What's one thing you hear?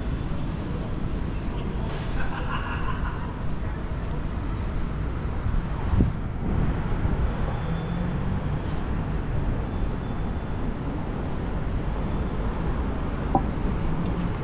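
Wind rumbles steadily across the microphone outdoors.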